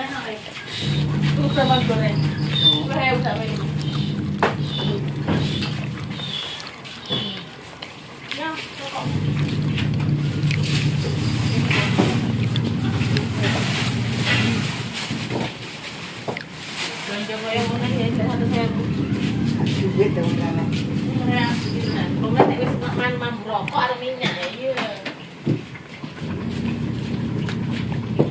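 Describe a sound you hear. Dishes and utensils clink and clatter.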